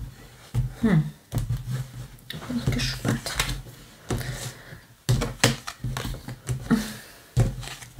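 Cards tap and slide on a wooden table.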